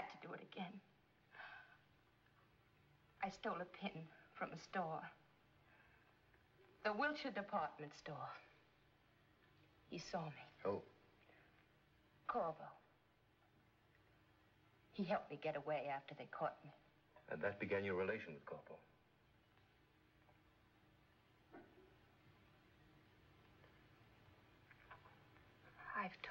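A woman speaks quietly and tensely nearby.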